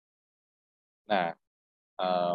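A young man speaks with animation over an online call.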